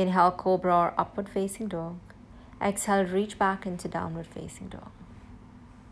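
A young woman speaks calmly and clearly, as if giving instructions.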